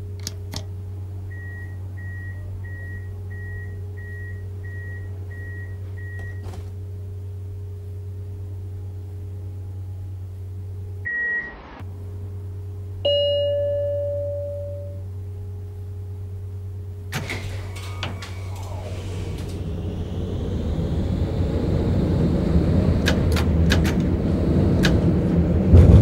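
A tram motor hums steadily.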